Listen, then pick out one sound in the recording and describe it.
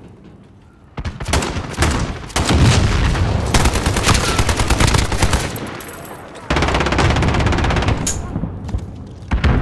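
A rifle fires rapid, loud bursts of gunshots.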